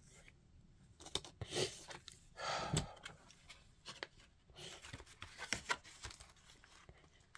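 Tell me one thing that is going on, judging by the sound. Paper pages rustle and turn.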